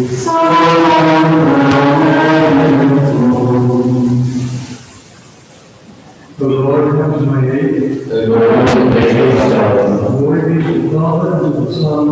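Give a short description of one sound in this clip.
An elderly man chants through a microphone in an echoing room.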